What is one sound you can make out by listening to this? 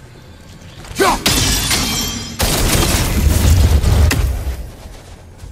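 A magical blast bursts with a loud, rushing roar.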